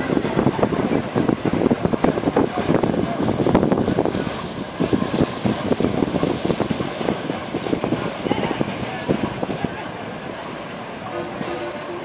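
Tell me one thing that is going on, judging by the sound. Water splashes and churns in a boat's wake.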